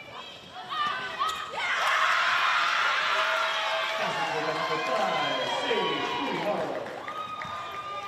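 A crowd of young women cheers and shouts loudly in a large echoing hall.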